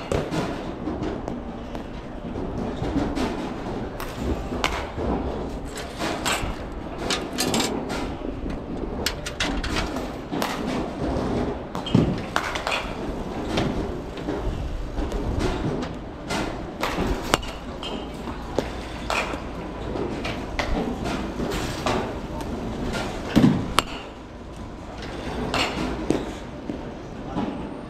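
Go-kart engines drone and whine as karts race around a track.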